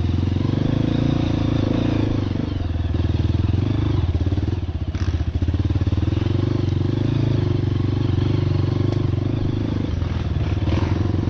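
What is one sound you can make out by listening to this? A dirt bike engine revs loudly up close, rising and falling as the rider shifts.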